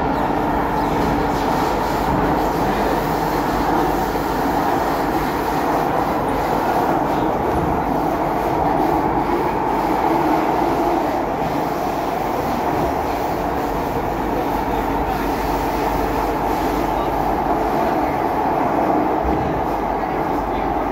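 A subway train rumbles and roars steadily along the tracks.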